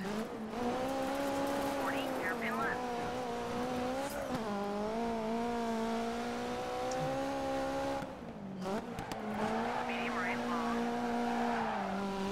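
Tyres skid and crunch on gravel.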